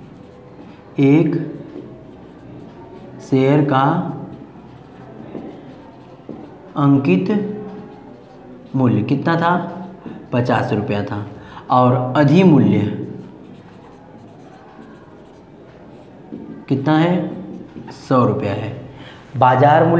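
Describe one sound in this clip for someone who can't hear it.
A young man explains calmly and clearly in short phrases, close by.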